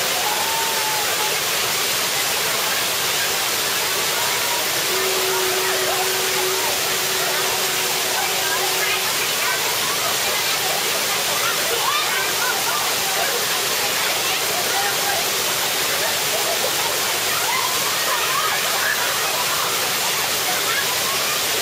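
Water splashes and rushes steadily into a pool.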